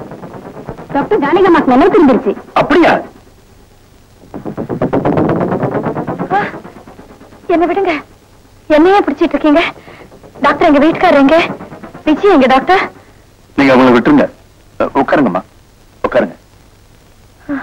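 A man speaks loudly and with agitation.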